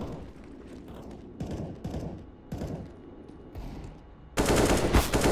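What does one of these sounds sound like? A rifle fires in short bursts.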